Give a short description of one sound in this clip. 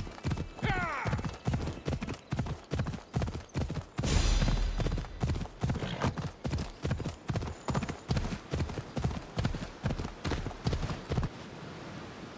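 A horse gallops with rhythmic pounding hoofbeats.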